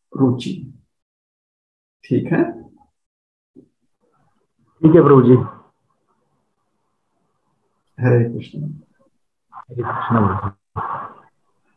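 A man speaks calmly in short phrases through an online call, with pauses between them.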